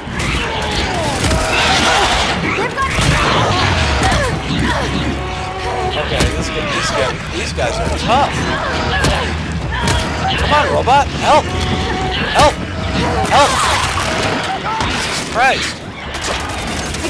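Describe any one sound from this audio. A large creature snarls and roars.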